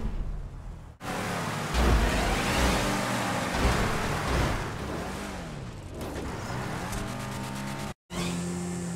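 Car engines roar at speed.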